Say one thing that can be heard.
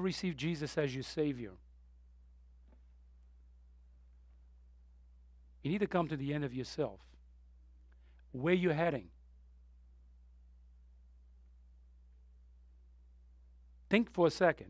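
A man speaks slowly and deliberately through a microphone, with long pauses.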